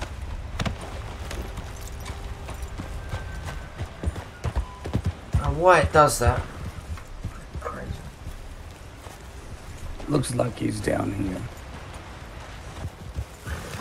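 A horse's hooves thud on soft ground at a walk.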